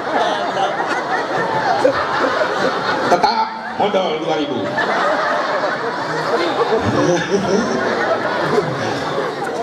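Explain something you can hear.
An elderly man preaches with animation through a microphone and loudspeakers.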